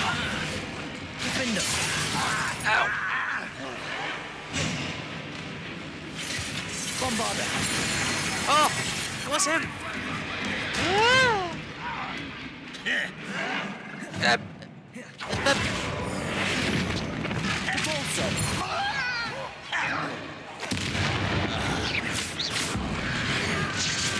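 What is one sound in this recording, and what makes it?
Magic spells crackle and blast in quick bursts.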